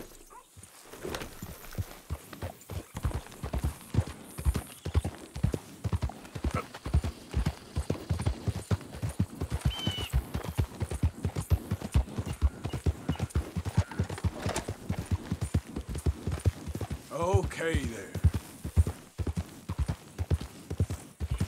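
A horse's hooves thud in a quick, steady gallop on soft ground.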